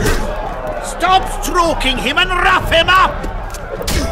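A man grunts and shouts with effort, close by.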